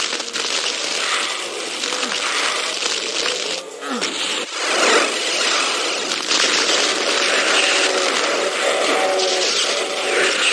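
A horde of demons snarls and roars in a video game.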